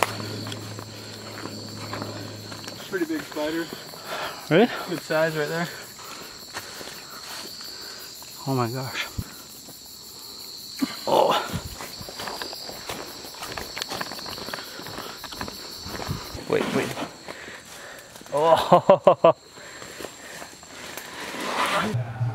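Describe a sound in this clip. Footsteps crunch on a rocky trail.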